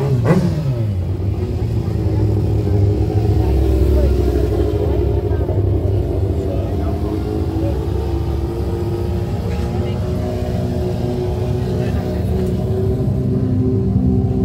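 A motorcycle engine drones steadily at a high idle.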